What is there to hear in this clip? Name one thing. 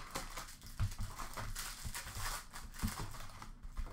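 A card pack wrapper tears open.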